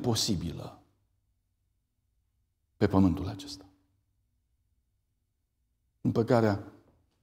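A middle-aged man speaks calmly through a microphone in short phrases with pauses.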